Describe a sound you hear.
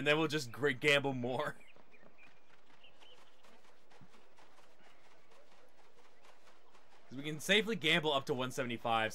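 Quick light footsteps patter on stone and grass.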